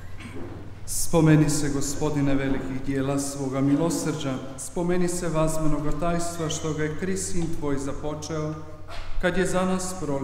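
A man sings a chant through a microphone in a large echoing hall.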